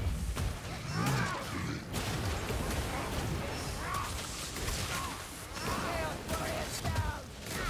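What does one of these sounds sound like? Creatures snarl and shriek.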